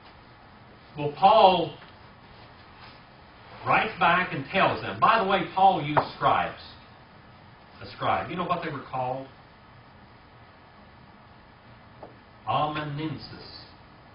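An elderly man speaks calmly in bursts, with pauses.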